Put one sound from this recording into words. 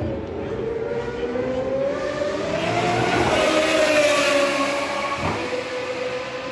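A racing car engine screams past at high speed, rising and then falling in pitch.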